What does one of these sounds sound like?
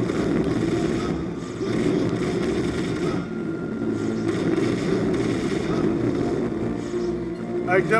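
A sword slashes and clashes in a fight.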